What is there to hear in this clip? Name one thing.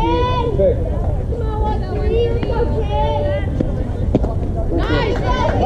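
Young women shout and cheer from a distance outdoors.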